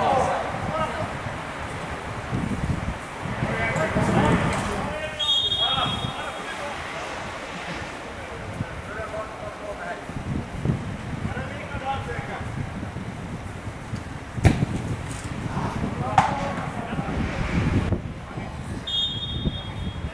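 Football players shout to each other across a large open pitch.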